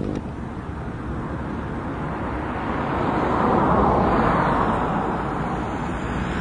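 Wind blows steadily outdoors, rumbling and gusting across open water.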